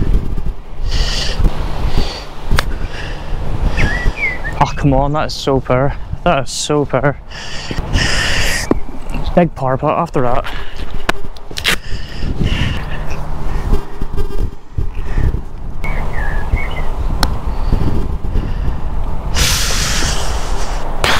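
Wind blusters across an open outdoor space.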